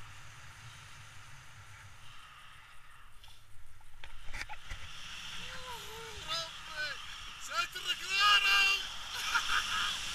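Wind rushes loudly past a microphone.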